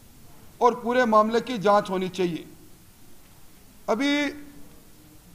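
A middle-aged man speaks calmly into a microphone, heard through a loudspeaker.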